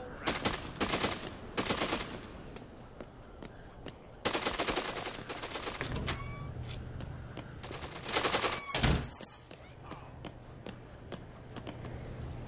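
Footsteps run quickly on a hard pavement.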